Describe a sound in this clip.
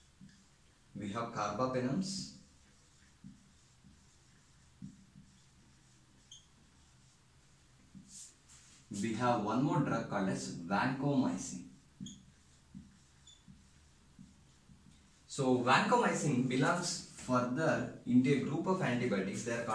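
A young man speaks calmly nearby, in short bursts.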